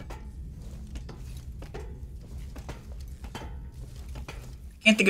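Hands grip metal ladder rungs with soft clanks.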